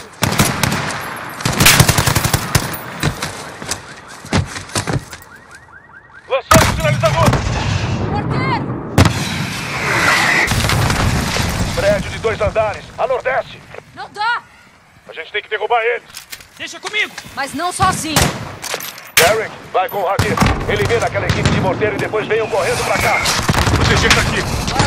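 Gunfire rattles in sharp bursts.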